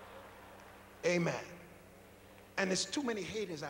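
A man speaks loudly through a microphone in a large echoing hall.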